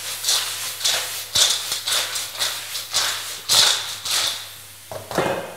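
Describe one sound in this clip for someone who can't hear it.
Food sizzles and clatters in a pan being tossed.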